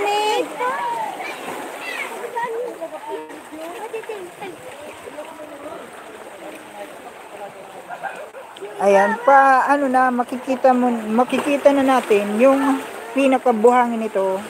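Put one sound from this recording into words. A young girl talks close by with animation.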